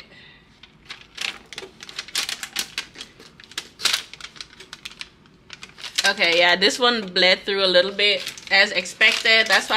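Paper crinkles and tears as it is peeled off a mug.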